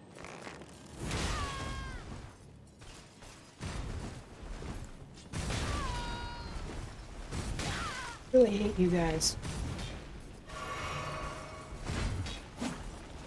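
Blades slash and strike in quick bursts.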